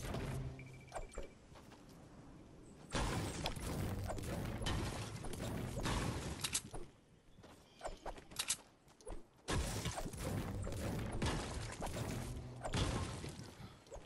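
A pickaxe strikes stone again and again.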